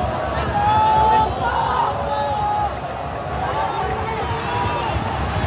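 A large stadium crowd chants and sings loudly all around.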